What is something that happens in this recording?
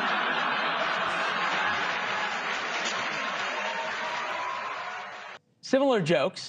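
A large audience laughs loudly.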